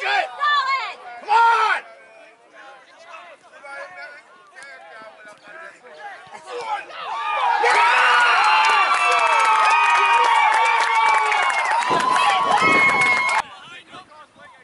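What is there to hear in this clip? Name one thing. Spectators near the microphone shout and cheer outdoors.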